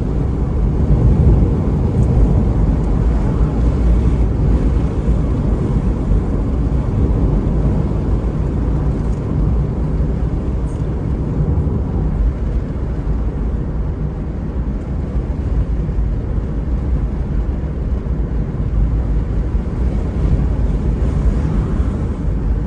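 Tyres roll steadily on a paved road.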